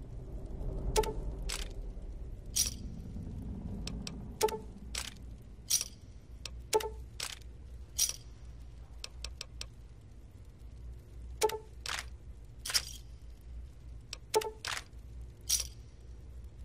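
Game menu clicks and beeps sound as items are selected.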